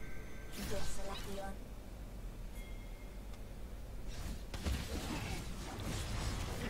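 Game spell effects whoosh and crackle in bursts during a fight.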